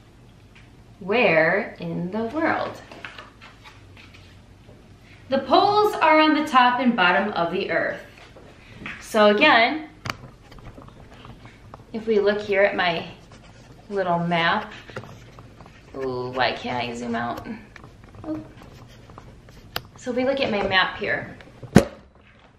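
A young woman speaks calmly and clearly, close to a microphone, in short phrases with pauses.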